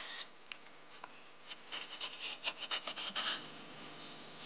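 A metal tool scrapes coconut flesh with quick rasping strokes.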